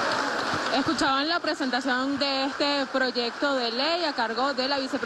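A crowd chants in unison.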